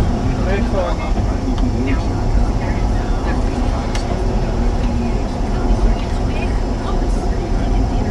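Tyres roll steadily on a wet road.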